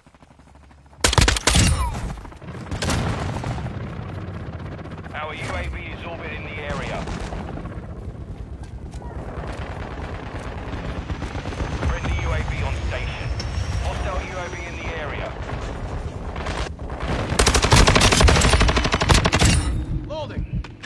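Rapid gunfire from a machine gun rattles.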